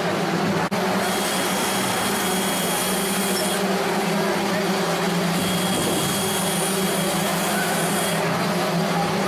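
An electric drill whirs as it bores into wood.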